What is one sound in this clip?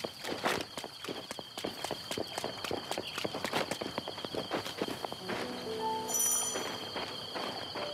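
Footsteps run quickly over grass and stone steps.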